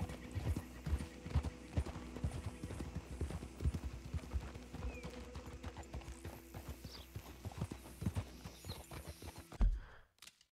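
Horses' hooves thud steadily on a dirt road.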